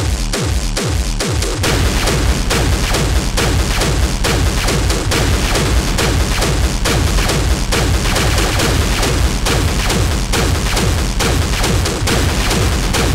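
Loud techno music with a fast pounding beat plays over big speakers.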